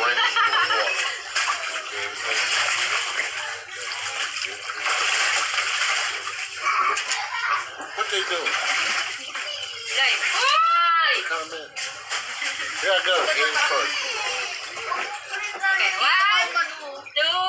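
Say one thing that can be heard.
Water splashes in a small pool.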